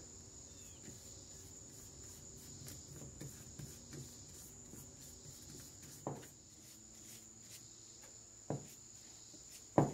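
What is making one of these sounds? A brush swishes softly over wood.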